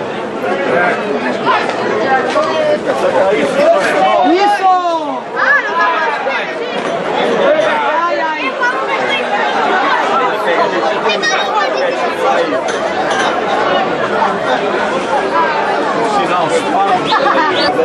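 Men shout loudly close by.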